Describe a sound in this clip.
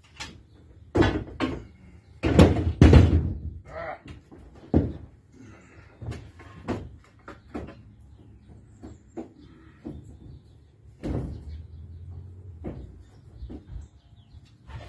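A wooden board knocks and clatters against a wall.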